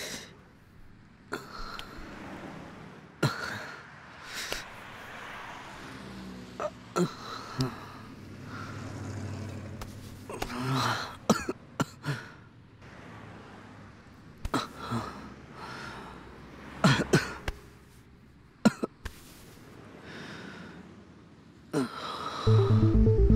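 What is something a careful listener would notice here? A man groans in distress nearby.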